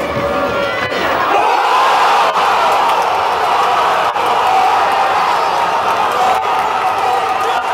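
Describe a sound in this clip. A large crowd of spectators roars and cheers loudly outdoors.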